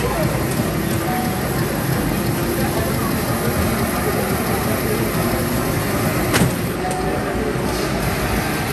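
Racing game engines roar loudly from arcade machine speakers.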